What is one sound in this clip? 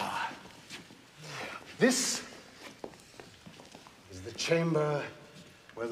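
A man speaks nearby in short, tense phrases.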